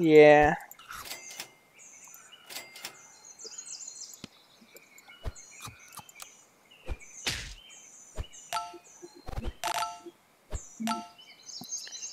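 Short playful game sound effects pop and chime.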